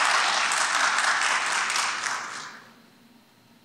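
A small crowd applauds in a large echoing hall, then the clapping dies away.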